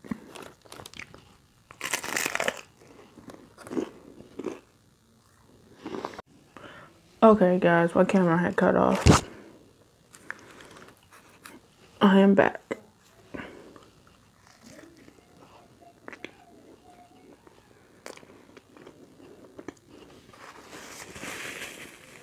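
A young woman bites and chews crunchy food close to a microphone.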